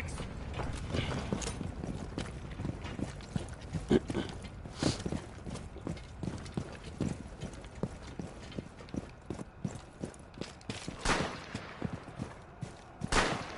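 Footsteps thud quickly as a soldier runs over hard ground.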